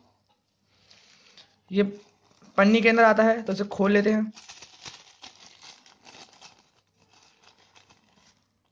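A thin plastic bag crinkles and rustles in hands.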